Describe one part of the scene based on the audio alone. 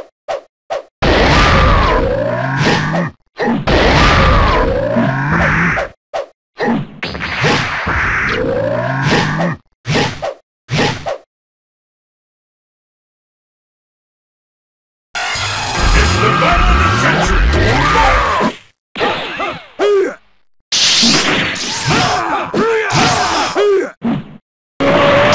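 Loud blasts and crashing hits roar and crackle.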